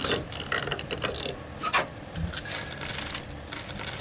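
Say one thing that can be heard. A heavy metal safe door creaks open.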